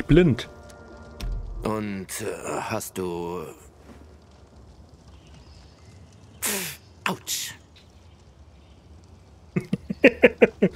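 A man speaks calmly, up close.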